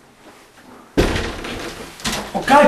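A man talks loudly nearby.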